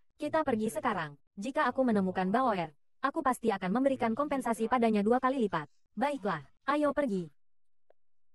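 A young woman speaks tensely, close by.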